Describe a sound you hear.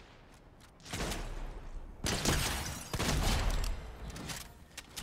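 Shotgun blasts boom close by.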